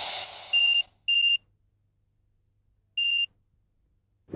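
A phone beeps as keys are pressed.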